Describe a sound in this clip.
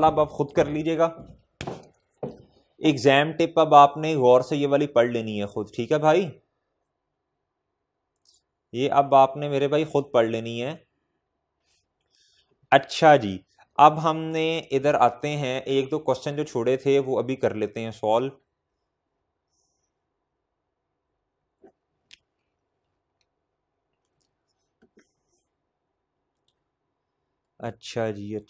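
A man lectures calmly into a microphone, with pauses.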